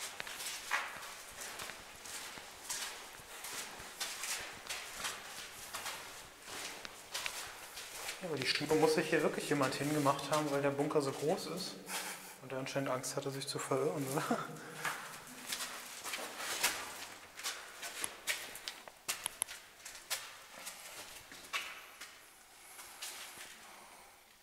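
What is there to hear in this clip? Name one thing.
Footsteps crunch and scuff on a gritty floor in an echoing tunnel.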